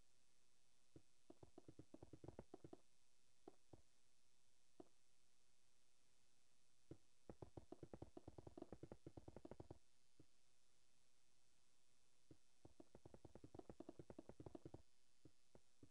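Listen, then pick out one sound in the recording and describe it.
Stone blocks are placed in quick bursts of soft clicking thuds.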